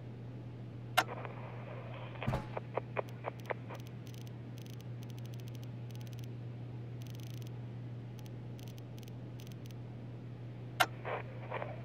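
A button clicks sharply a few times.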